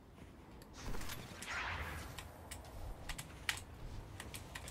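An energy blast crackles and whooshes.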